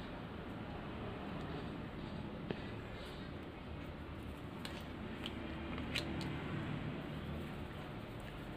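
Playing cards softly tap and slide on a table.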